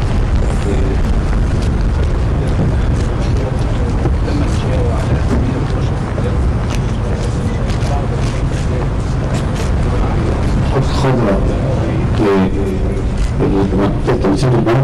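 A crowd murmurs and shuffles outdoors.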